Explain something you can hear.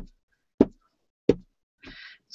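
A rubber stamp taps onto paper.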